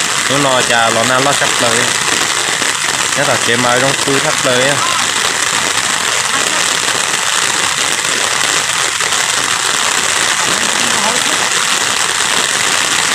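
Heavy rain pours onto water.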